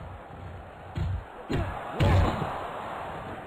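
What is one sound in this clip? A body thuds heavily onto a hard floor.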